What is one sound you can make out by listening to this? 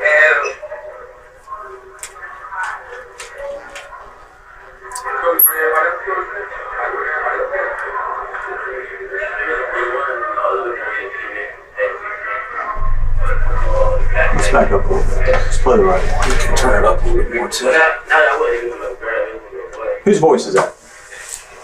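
A man speaks calmly in a small room, heard through a room microphone.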